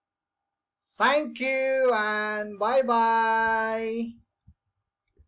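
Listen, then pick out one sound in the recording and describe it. A middle-aged man speaks in a drawn-out, sing-song voice through a microphone.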